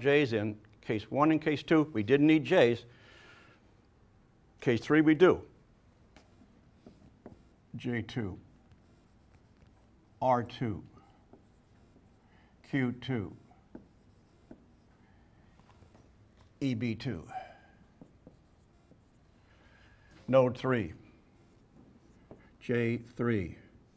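An elderly man speaks calmly in short phrases with pauses, close by.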